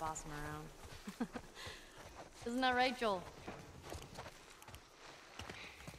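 Footsteps crunch slowly over grass and a wooden floor.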